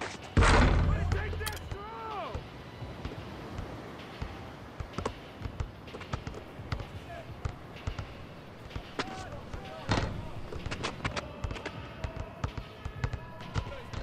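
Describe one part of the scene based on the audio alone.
A basketball bounces repeatedly on a hard court.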